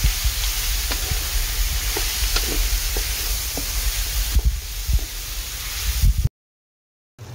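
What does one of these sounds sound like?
Food sizzles loudly in a hot pan.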